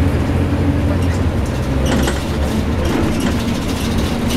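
A bus rattles and clatters over the road.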